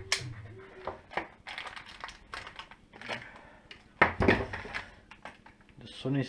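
Small metal and plastic parts click and rattle as they are handled.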